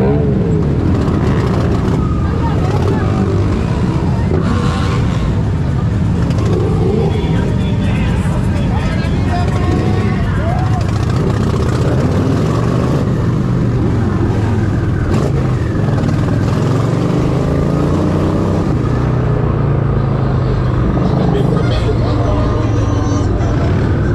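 A motorcycle engine roars loudly up close, revving and rising as it speeds along.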